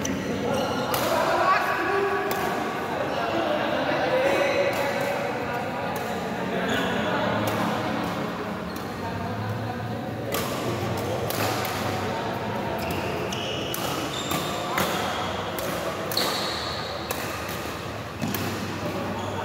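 Shuttlecocks are struck with rackets in sharp pops.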